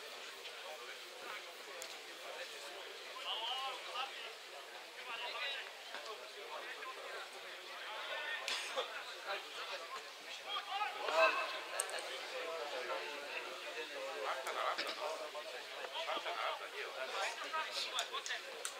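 Men in a small crowd nearby talk and call out outdoors.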